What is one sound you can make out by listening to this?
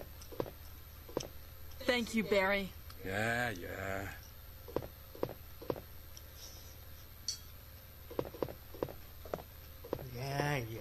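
Footsteps tap on a hard wooden floor.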